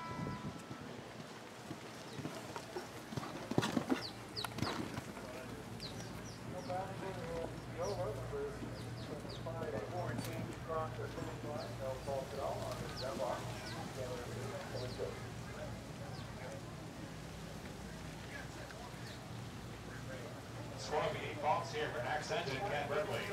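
A horse's hooves thud on soft sand as it gallops and lands from jumps.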